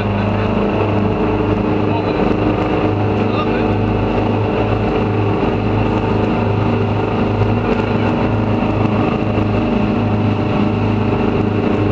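Water rushes along the side of a moving boat.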